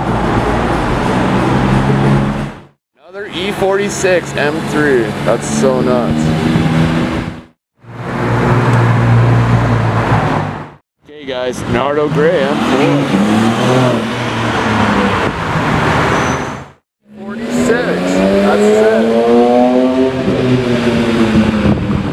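A powerful car engine revs and roars as cars drive past.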